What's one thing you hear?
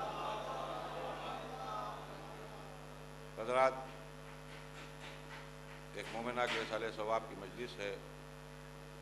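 A middle-aged man speaks slowly and with feeling into a microphone, in a reverberant hall.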